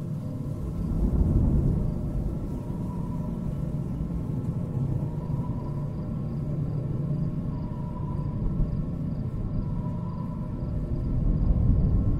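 Strong wind roars and rumbles.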